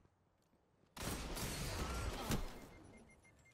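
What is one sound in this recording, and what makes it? A gun fires in a loud burst.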